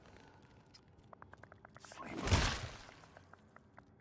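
A gun fires a rapid burst of shots, ending in a loud blast.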